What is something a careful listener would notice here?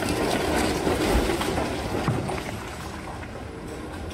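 A concrete slab crashes down onto rubble.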